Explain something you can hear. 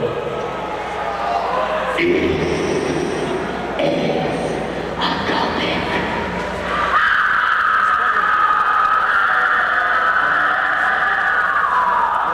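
A man behind a drum kit sings into a microphone.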